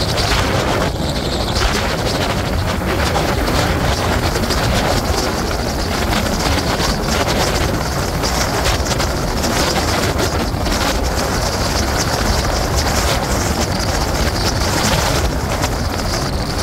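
Wind buffets loudly past a moving rider.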